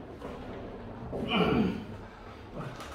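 A man grunts and strains loudly.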